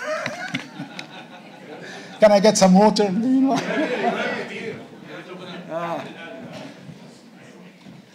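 An elderly man speaks with animation into a microphone, heard through loudspeakers in a hall.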